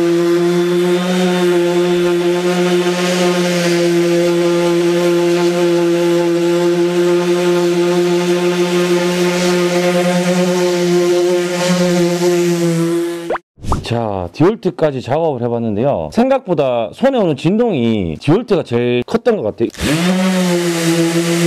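An electric sander hums steadily as it vibrates across a tile.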